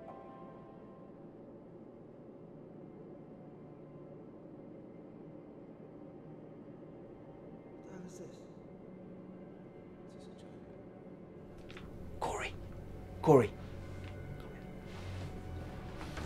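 A jet's engines hum steadily inside the cabin.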